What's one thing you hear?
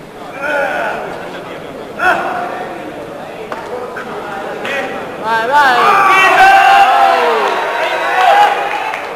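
A man shouts encouragement nearby.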